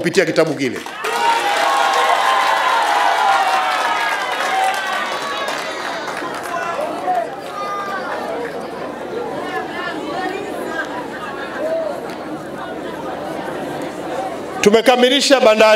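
A large crowd cheers and sings.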